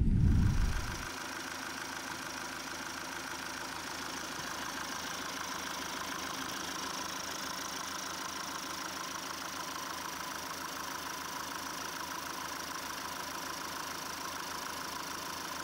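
An engine runs with a steady whirring hum.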